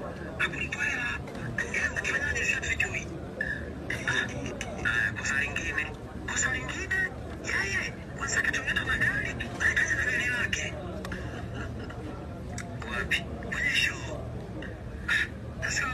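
A young man speaks with animation into microphones, close by.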